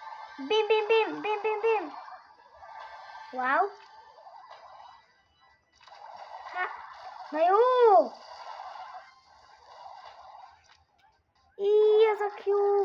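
Playful electronic game sound effects chirp and swoop in short bursts.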